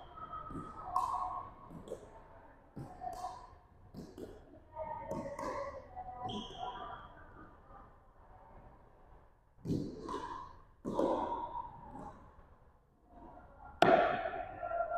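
Paddles hit a plastic ball with sharp pops that echo around a large hall.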